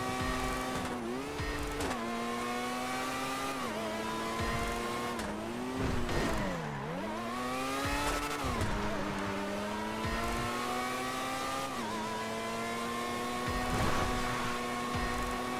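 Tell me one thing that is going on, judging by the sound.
A racing car engine hums steadily, its pitch rising and dropping as the car speeds up and slows down.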